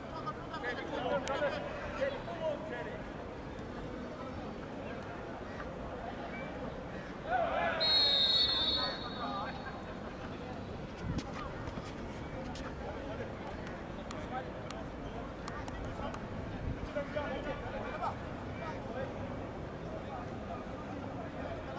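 A crowd murmurs in a large open stadium.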